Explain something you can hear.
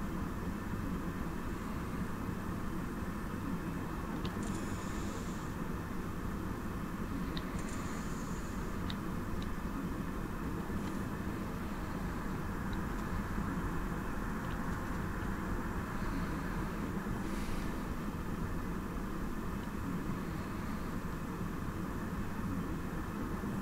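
A train's motor hums steadily from inside the cab.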